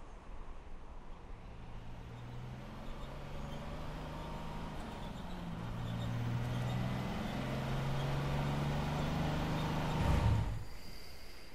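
A truck engine rumbles as the truck approaches and stops.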